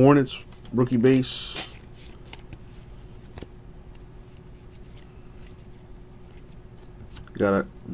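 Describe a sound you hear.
Trading cards slide and rustle against each other in a hand.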